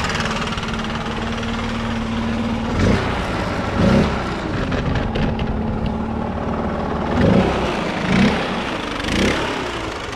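A leaf blower engine idles nearby with a steady drone.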